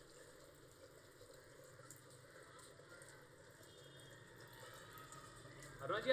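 Tap water runs into a sink.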